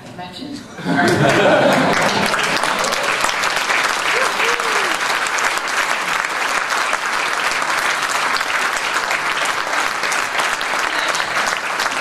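An audience applauds steadily.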